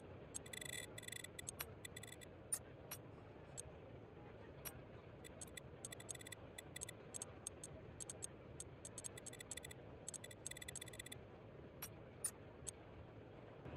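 Soft menu clicks tick in quick bursts.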